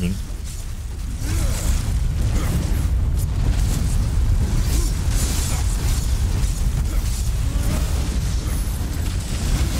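Weapons clash and thud in a fast, rumbling fight.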